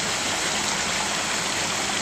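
Water rushes out through a gate into a ditch.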